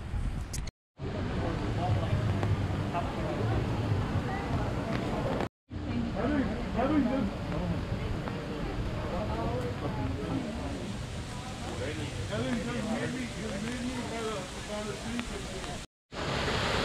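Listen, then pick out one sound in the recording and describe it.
A crowd of people chatter while walking nearby.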